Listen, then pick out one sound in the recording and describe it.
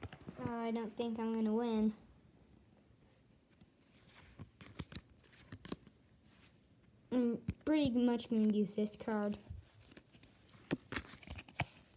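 Playing cards rustle and flick softly in hands.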